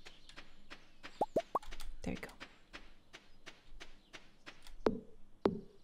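Light footsteps tap quickly and evenly on a path.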